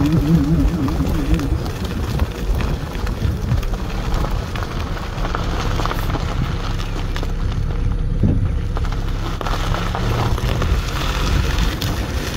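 A car engine hums steadily as the car drives.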